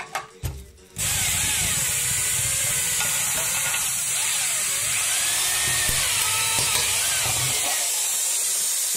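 An electric drill whirs as it bores through plastic.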